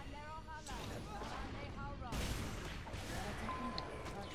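Fiery spells whoosh and burst in quick blasts.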